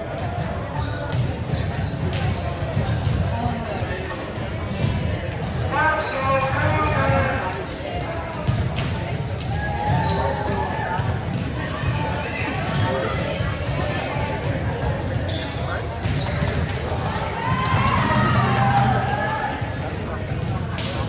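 A crowd of young men and women talk and call out in a large echoing hall.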